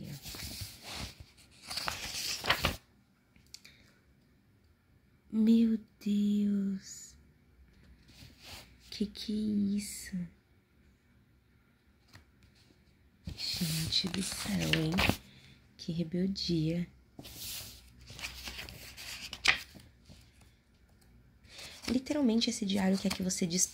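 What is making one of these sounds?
Paper pages rustle as they are turned by hand.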